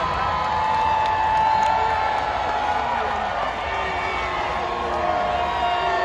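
A man calls out loudly to a crowd outdoors.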